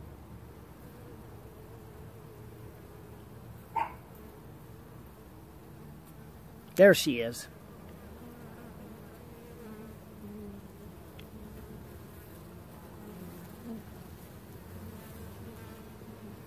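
Honeybees buzz steadily in a dense swarm close by.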